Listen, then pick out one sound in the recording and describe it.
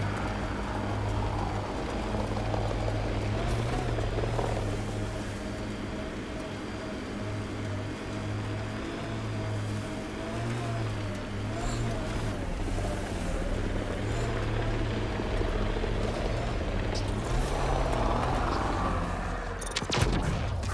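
A vehicle engine hums steadily and rises and falls in pitch.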